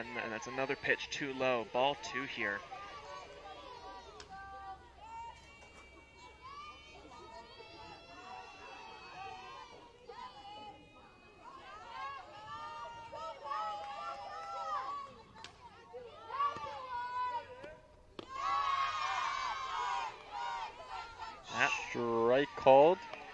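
Young women on a softball field chant and cheer loudly outdoors.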